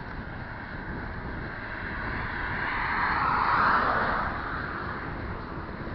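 A car approaches and passes by on the road.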